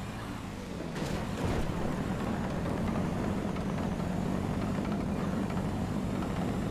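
A car's tyres rumble on a hard road.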